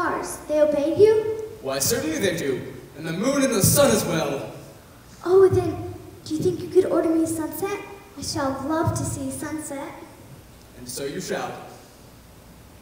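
A man speaks with expression in a theatrical voice.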